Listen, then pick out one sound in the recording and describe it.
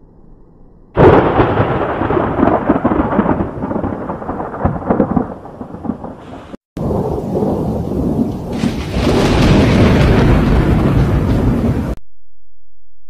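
Thunder cracks loudly nearby and rolls away in a long rumble.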